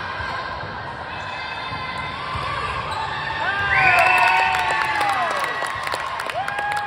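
Young girls shout and cheer together.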